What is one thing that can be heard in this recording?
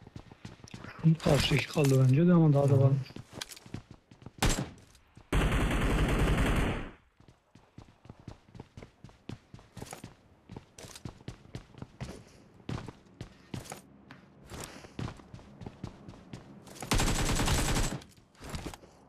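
Gunshots crack in short bursts from a video game.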